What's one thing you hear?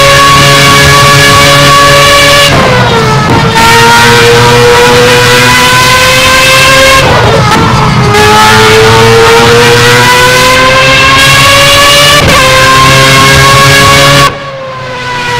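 A racing car engine screams loudly at high revs, dropping in pitch at each gear change.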